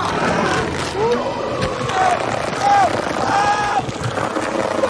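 A young man screams in agony.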